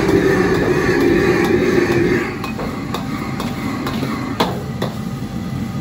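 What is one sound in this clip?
Vegetables sizzle and hiss in a hot wok.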